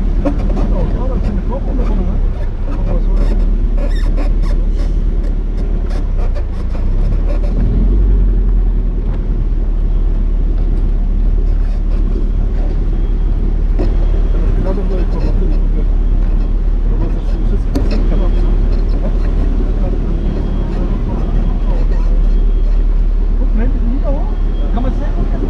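Tyres rumble over cobblestones.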